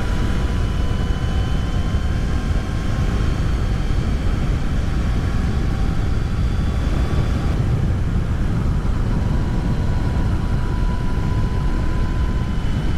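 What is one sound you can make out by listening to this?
A motorcycle engine hums steadily while riding along.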